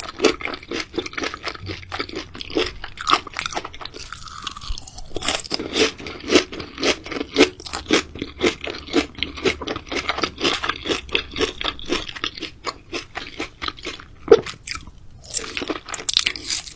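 A woman chews crunchy food loudly and wetly close to a microphone.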